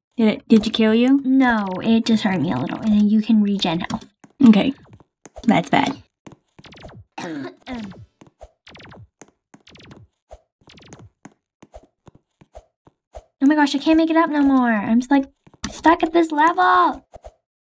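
A young girl talks excitedly and close to a microphone.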